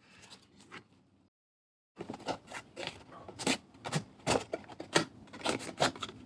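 A box sleeve slides off with a papery scrape.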